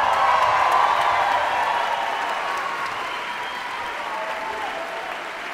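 A large orchestra plays a sustained, slowly fading chord in an echoing hall.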